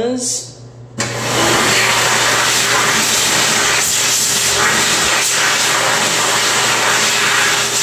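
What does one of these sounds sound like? A hand dryer blows with a loud, steady roar.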